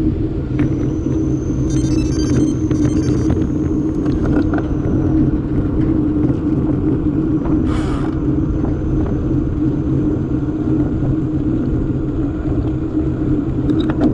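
Bicycle tyres hum on rough asphalt.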